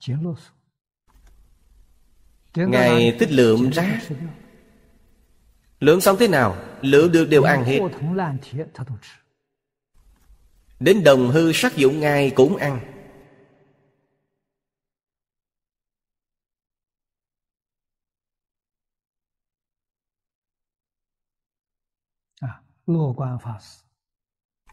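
An elderly man speaks calmly and warmly into a microphone, close by.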